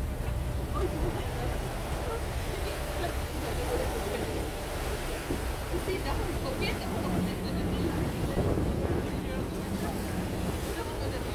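Choppy sea water splashes and laps.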